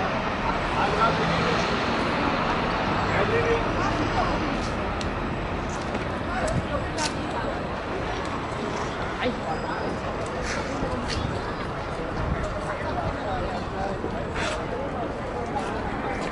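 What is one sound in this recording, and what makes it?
A crowd of people murmurs outdoors.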